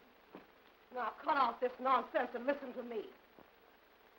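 A woman speaks sharply and firmly nearby.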